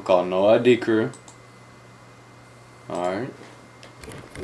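A young man speaks nearby.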